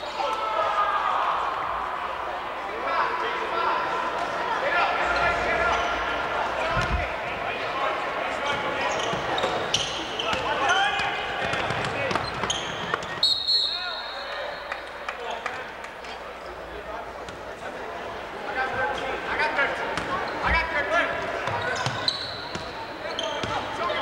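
A crowd of spectators talks and cheers in an echoing gym.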